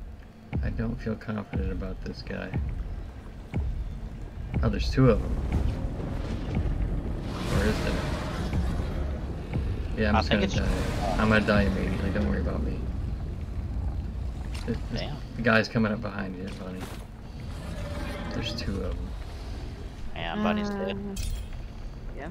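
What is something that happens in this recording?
An elderly man talks casually into a close microphone.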